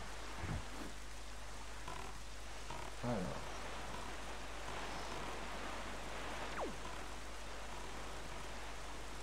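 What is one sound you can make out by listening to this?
Heavy rain pours down over the sea.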